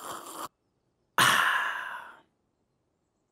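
A cartoon dog gulps water noisily.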